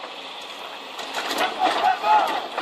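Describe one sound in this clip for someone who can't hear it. A heavy machine crashes and clatters as it tips over.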